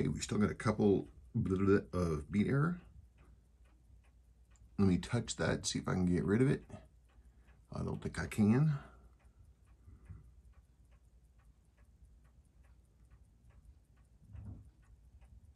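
A mechanical watch ticks quickly and steadily.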